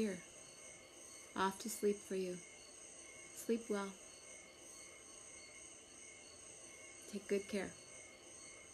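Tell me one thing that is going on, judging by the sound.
A woman speaks calmly and close to a microphone, in short bursts.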